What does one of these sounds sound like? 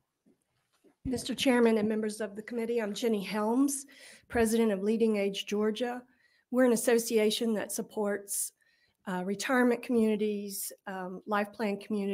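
A middle-aged woman speaks steadily into a microphone.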